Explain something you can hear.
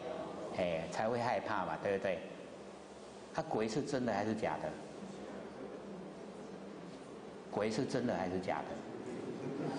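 An elderly man speaks through a microphone.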